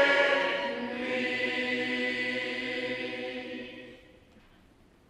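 A congregation sings a hymn together in a large echoing hall.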